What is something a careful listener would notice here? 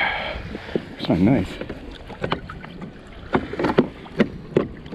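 Dolphins break the surface with splashes close by.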